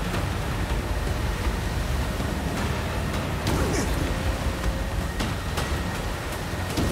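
Water splashes and churns under a boat.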